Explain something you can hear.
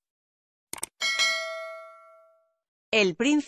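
A bell chimes brightly and rings out.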